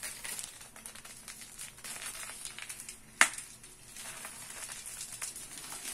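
Powder pours and hisses softly into water.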